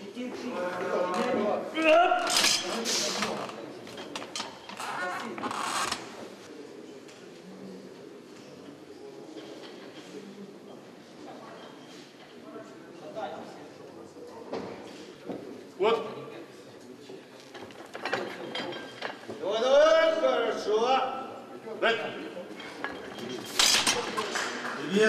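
Several men shout loud encouragement in an echoing hall.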